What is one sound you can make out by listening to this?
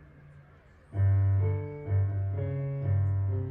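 An electric piano plays loud, steady notes.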